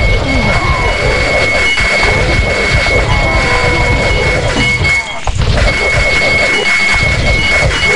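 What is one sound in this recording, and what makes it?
Swords clash and soldiers fight in a busy battle.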